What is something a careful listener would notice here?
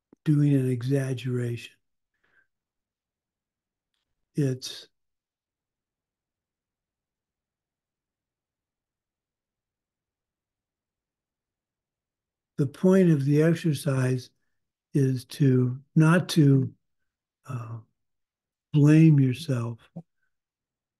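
An older man speaks calmly and haltingly over an online call.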